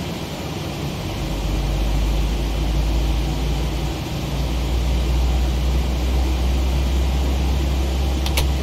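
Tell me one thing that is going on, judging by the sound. A deep low rumble swells and grows louder.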